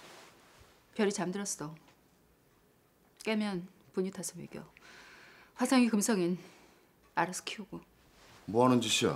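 A woman speaks quietly and calmly nearby.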